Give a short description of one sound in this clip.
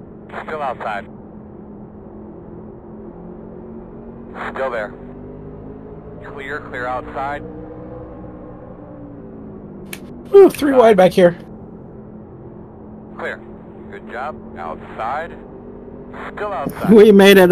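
A race car engine drones steadily at high revs.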